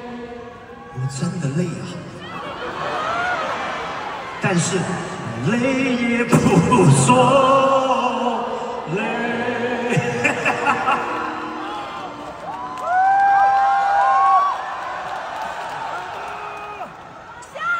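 A man laughs heartily through a microphone.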